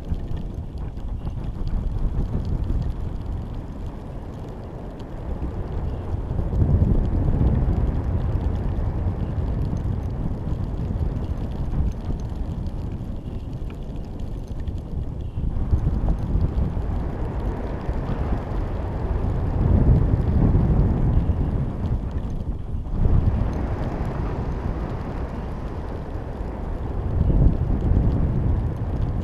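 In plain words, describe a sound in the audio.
Wind buffets and rumbles steadily across the microphone, rising and falling in gusts.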